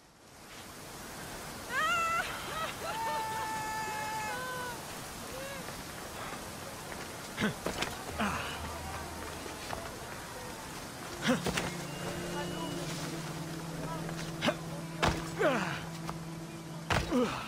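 Footsteps crunch on dirt and dry grass.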